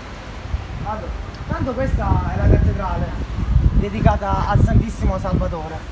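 A group of men talk among themselves.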